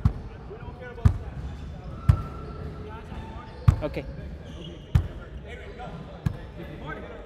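A basketball bounces with loud thuds in an echoing gym.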